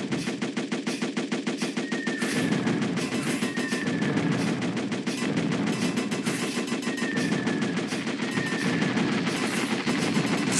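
A gun fires rapidly in a steady stream of shots.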